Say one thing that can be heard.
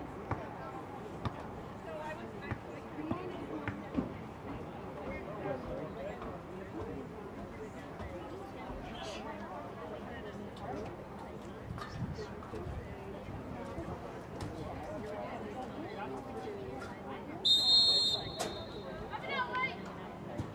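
Young women shout and call to each other across an open outdoor field.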